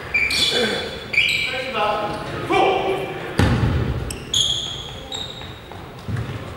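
Sneakers squeak sharply on a wooden court, echoing in a large hall.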